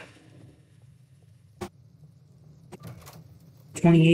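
A wooden door opens with a click.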